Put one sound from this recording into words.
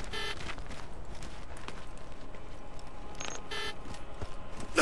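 Short electronic menu beeps chime.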